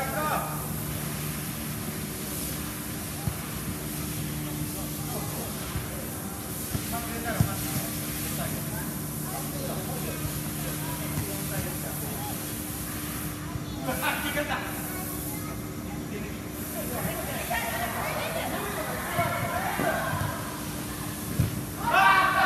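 A futsal ball thuds off a player's foot in an echoing indoor hall.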